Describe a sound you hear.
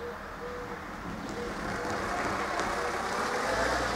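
A car drives past outdoors, its tyres rolling on asphalt.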